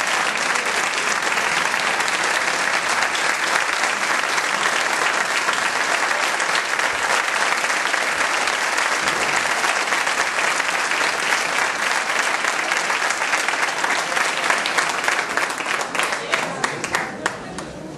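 A large audience applauds loudly in an echoing hall, and the applause thins out at the end.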